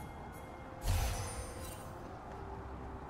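A magic blast bursts with a whooshing crash.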